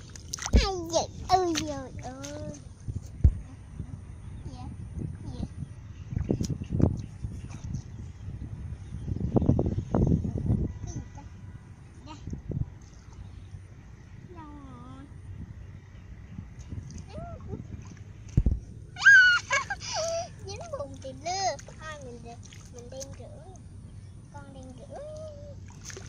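Muddy water splashes and sloshes under small hands.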